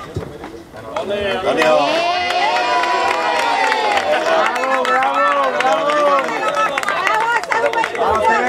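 A crowd of men and women cheers and shouts loudly outdoors.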